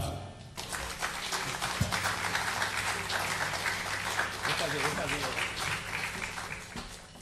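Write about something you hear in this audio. A live band plays a lively samba with drums.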